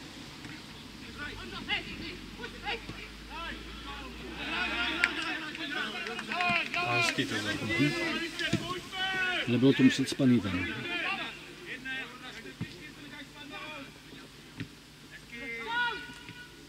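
Men shout to each other across an open playing field, heard from a distance.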